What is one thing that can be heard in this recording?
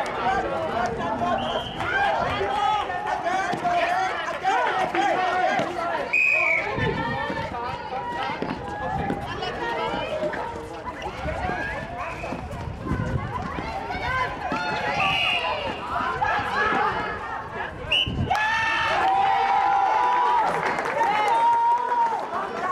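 A ball bounces on a hard court.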